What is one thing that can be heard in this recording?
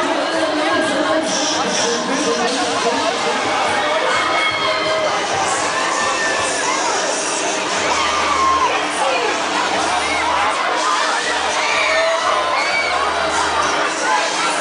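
A crowd of people talks outdoors.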